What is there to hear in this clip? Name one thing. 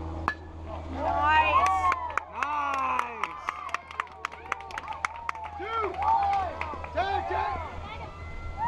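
Young players and onlookers shout and cheer outdoors.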